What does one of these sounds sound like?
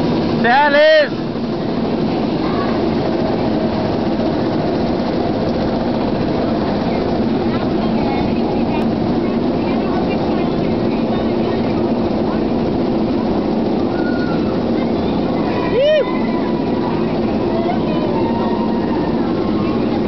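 A roller coaster rumbles and rattles along its track.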